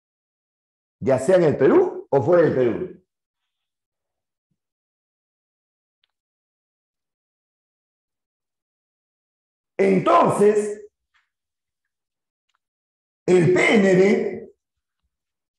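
A middle-aged man speaks calmly into a close microphone, in short bursts with long pauses.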